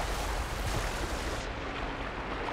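Water splashes as a swimmer paddles at the surface.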